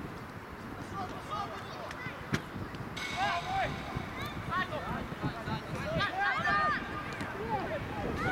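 Children shout and call out across an open outdoor field.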